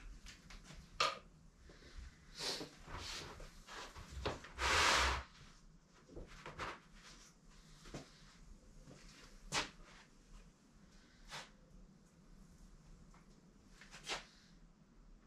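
Things knock and clatter close by.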